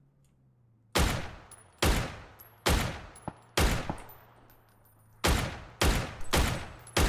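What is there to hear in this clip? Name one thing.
Rifle shots ring out in quick succession, each with a long echo.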